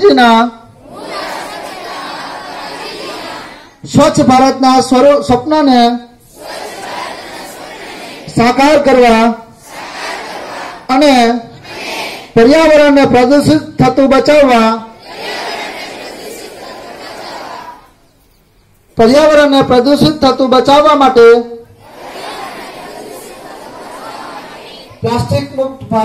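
A large crowd of children chants back in unison from a distance.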